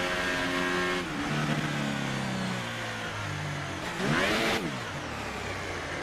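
A racing car engine drops in pitch as it shifts down through the gears.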